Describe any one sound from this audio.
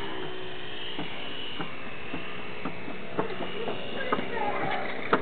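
A small model plane engine buzzes loudly, its pitch wavering as it flies past.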